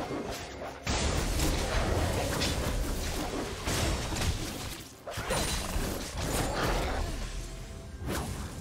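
Game combat effects clash and thud rapidly.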